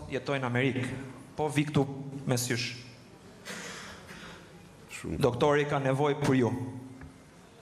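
An elderly man laughs heartily into a microphone.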